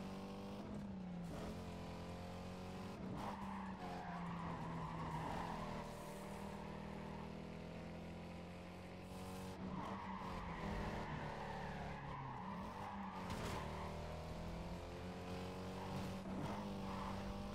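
A car engine roars steadily at high revs, rising and falling in pitch with gear changes.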